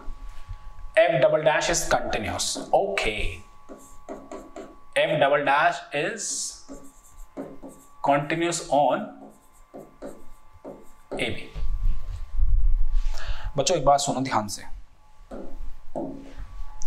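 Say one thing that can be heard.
A man explains calmly and clearly, as if teaching a class.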